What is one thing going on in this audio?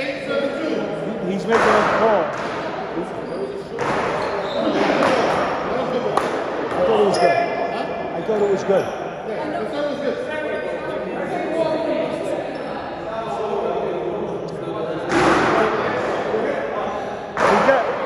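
A woman talks with animation close by, in a hard echoing hall.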